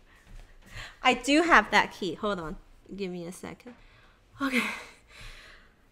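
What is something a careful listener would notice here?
A young woman speaks cheerfully, close to a microphone.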